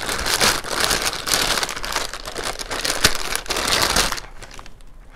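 Plastic packaging crinkles and rustles loudly.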